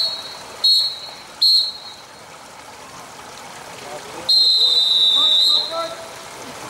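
An electronic start signal beeps loudly, twice briefly and then once long.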